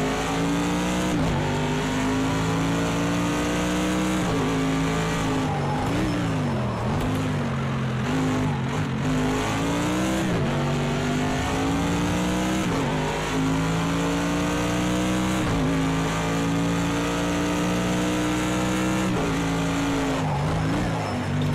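A racing car engine roars at high revs, rising through the gears and dropping as it brakes into corners.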